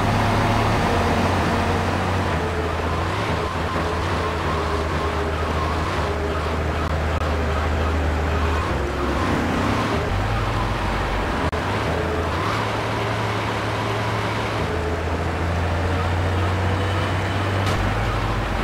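A fire truck's engine drones as the truck drives along.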